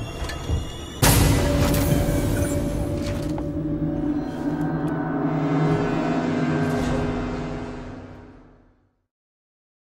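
An elevator hums and rumbles steadily as it moves, then fades away.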